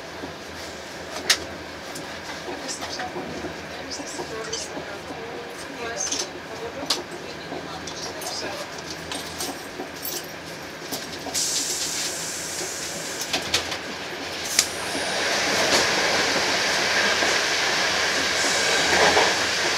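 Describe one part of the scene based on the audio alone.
A train rumbles steadily along the rails, growing louder toward the end.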